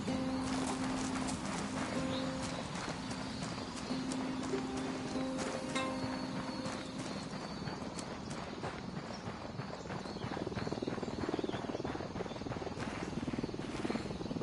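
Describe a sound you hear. Footsteps run on dirt and gravel.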